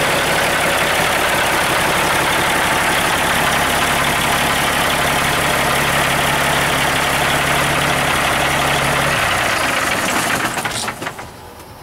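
A large diesel engine runs with a loud, steady roar.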